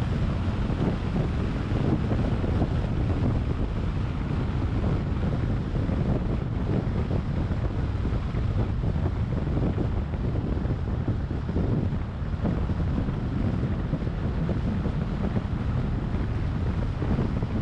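A car drives steadily along a road with a low rumble of tyres and engine.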